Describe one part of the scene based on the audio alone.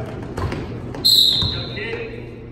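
A referee blows a short, sharp whistle.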